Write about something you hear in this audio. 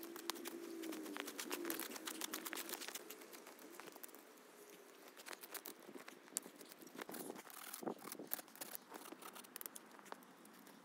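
Boots crunch and stomp on snow.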